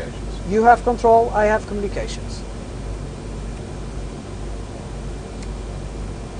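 A steady low hum of aircraft engines fills the cabin.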